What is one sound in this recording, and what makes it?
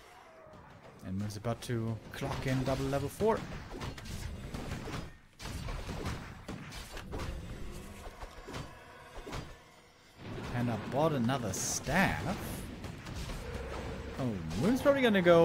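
A man commentates with animation through a microphone.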